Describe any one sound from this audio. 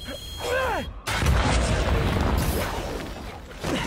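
An explosion booms with a roaring blast.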